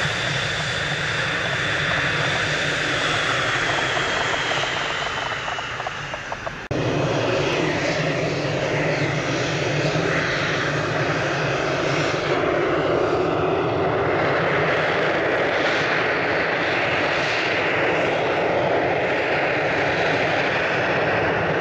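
A jet engine roars loudly and steadily close by.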